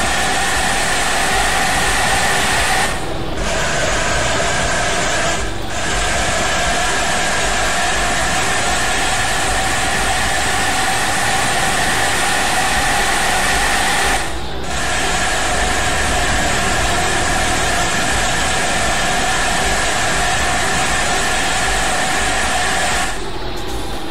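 A bus engine hums steadily as it drives along.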